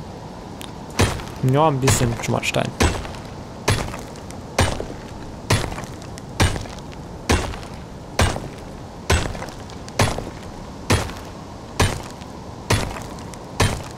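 A stone tool strikes rock in steady, repeated knocks.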